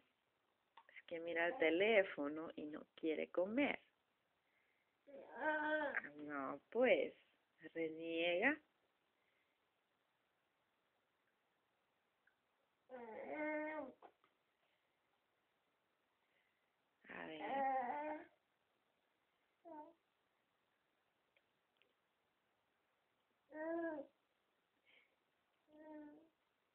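A baby babbles and squeals in short bursts close by.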